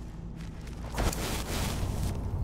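A magic spell crackles and hums close by.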